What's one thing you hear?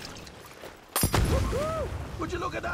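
A fire bursts into flames and roars loudly.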